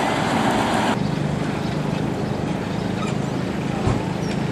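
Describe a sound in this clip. A motorbike engine hums as it rides past.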